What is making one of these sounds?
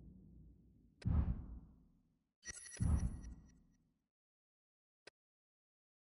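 Soft whooshing interface sounds play, followed by a short click.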